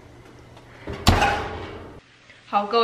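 An oven door shuts with a thud.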